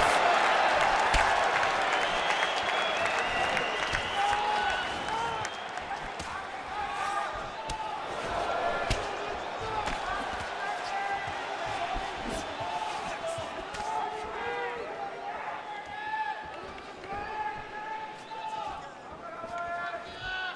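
A crowd roars and cheers loudly in a large arena.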